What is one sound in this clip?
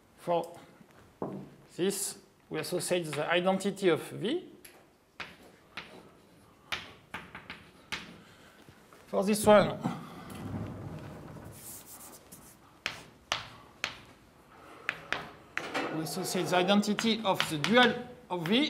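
Chalk taps and scrapes on a blackboard.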